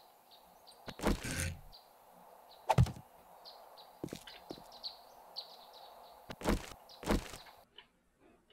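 A hammer strikes wooden planks.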